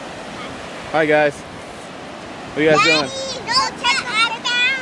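A young child speaks up close in a high, lively voice.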